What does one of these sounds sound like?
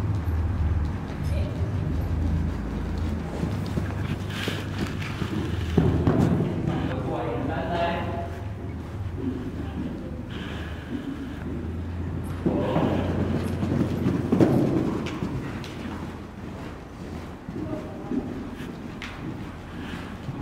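Horse hooves thud softly on a sand floor.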